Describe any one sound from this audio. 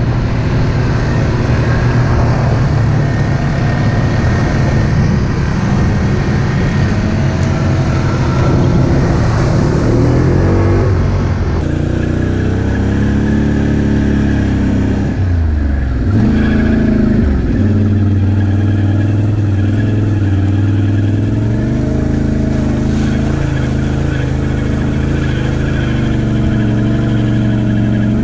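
A quad bike engine rumbles close by, revving up and down.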